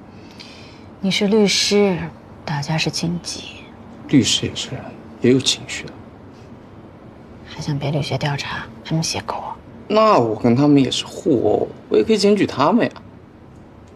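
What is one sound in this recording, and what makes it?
A young woman speaks softly and gently, close by.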